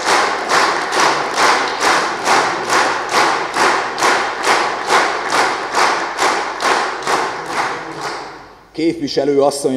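A crowd claps in a steady, even rhythm in a large echoing hall.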